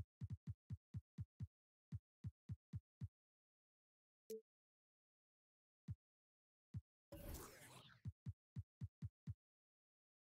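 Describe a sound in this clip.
Short menu blips sound in quick succession.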